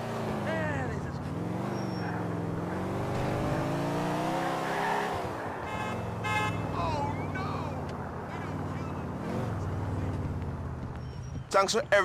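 A car engine revs and drones, rising and falling in pitch.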